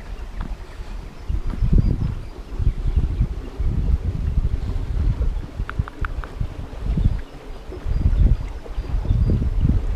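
A shallow stream trickles over rocks.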